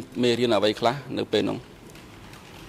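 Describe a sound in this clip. A man speaks into a microphone in a calm, formal tone.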